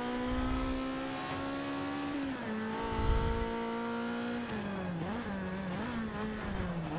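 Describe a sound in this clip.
A racing car engine roars steadily, shifting down through the gears.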